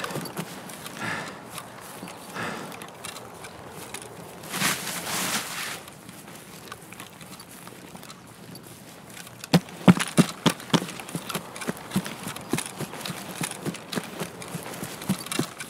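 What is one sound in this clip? Footsteps tread through grass and over dirt.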